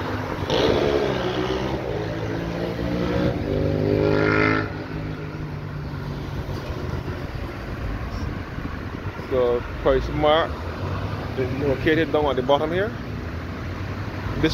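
Cars drive past on asphalt around a roundabout.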